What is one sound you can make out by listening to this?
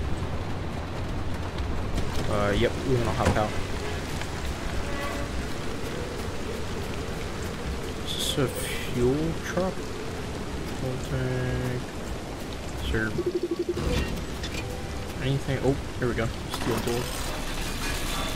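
A young man talks animatedly into a microphone.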